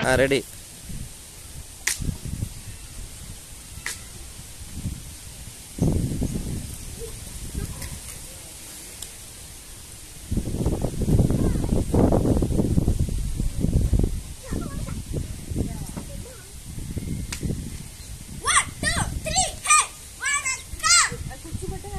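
A wooden stick swishes through the air as it is twirled.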